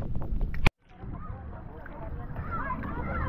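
Water splashes and laps around a swimmer.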